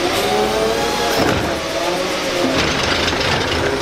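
A plastic bin clatters against a truck's arm.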